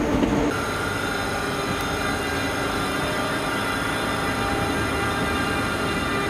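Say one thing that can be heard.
An electric locomotive hums steadily as it pulls a train slowly past.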